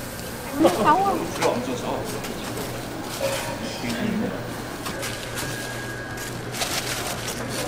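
Gloved hands rustle while handling crispy fried food.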